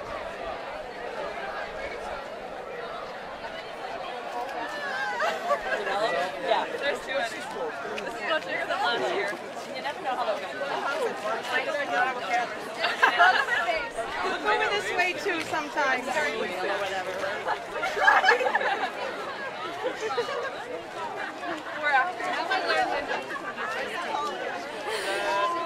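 A crowd of young people chatters and laughs outdoors.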